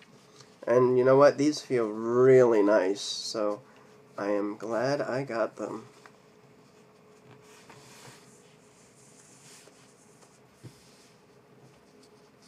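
A sock rustles softly as it is pulled over a foot.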